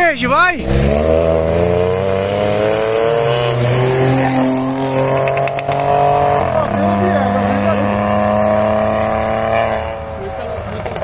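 A car engine drones loudly as cars drive past close by.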